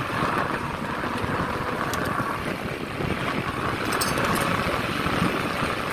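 A winch rattles as it turns.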